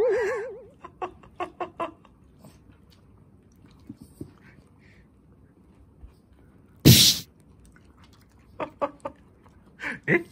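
A small dog chews and licks at a treat.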